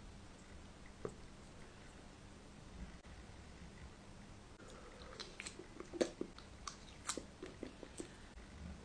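A fork clinks against a glass bowl.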